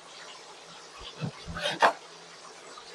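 A knife chops through fruit and knocks on a wooden board.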